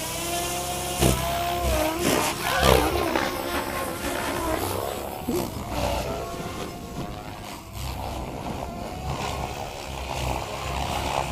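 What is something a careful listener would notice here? Model helicopter rotors whir overhead, rising and falling in pitch.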